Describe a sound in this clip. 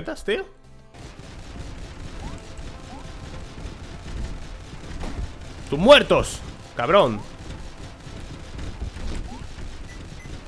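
Video game gunfire crackles rapidly.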